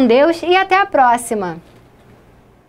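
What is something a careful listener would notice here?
A young woman speaks brightly and clearly into a microphone.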